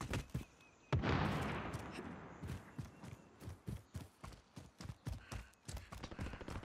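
Footsteps crunch quickly over snow and rock.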